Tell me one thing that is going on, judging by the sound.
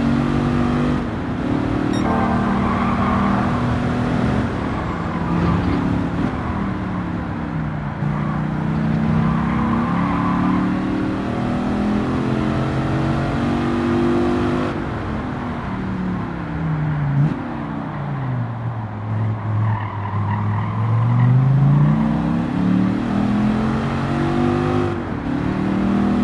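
A sports car engine roars loudly, rising and falling in pitch as it shifts gears and slows for corners.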